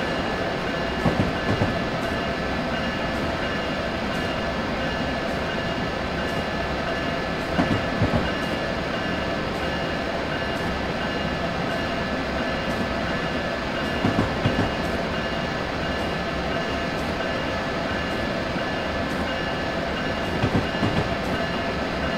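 Train wheels clatter in quick pairs over rail joints.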